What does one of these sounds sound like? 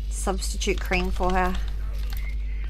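A young woman speaks expressively into a close microphone.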